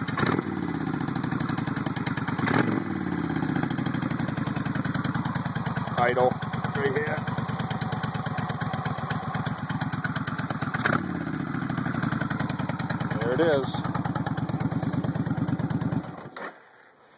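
A motorcycle engine idles with a deep, steady throb close by, then shuts off.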